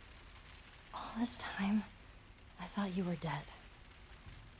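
A teenage girl speaks anxiously, close by.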